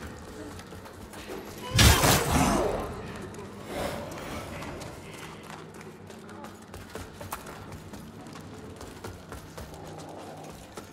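Armoured footsteps clatter quickly on a stone floor.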